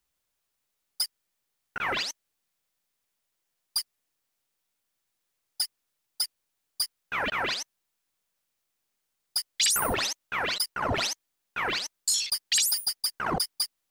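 Short electronic menu beeps click now and then.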